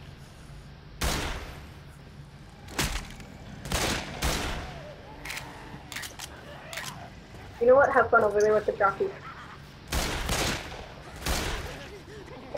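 Pistol shots ring out one at a time with a short echo.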